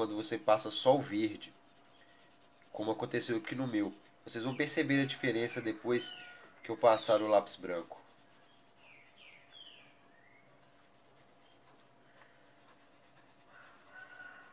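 A pencil scratches softly across paper.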